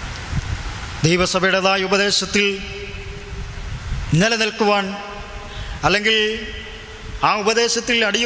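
A man speaks calmly into a microphone, heard close.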